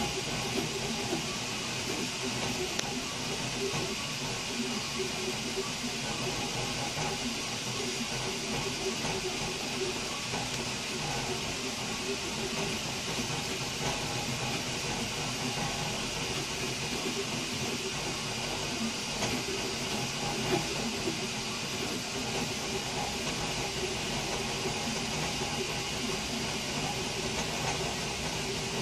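A small cooling fan whirs steadily.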